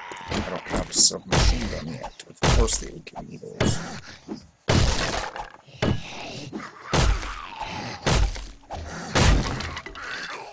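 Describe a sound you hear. A hammer strikes wooden boards in sharp, repeated knocks.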